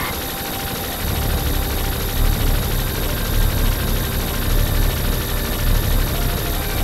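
A deep, heavy rumble pulses.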